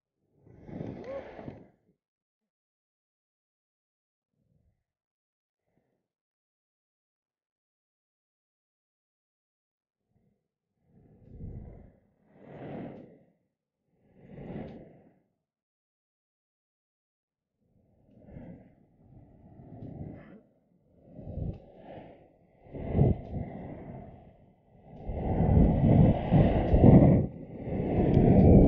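Wind rushes past in loud gusts.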